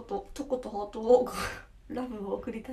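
A young woman giggles.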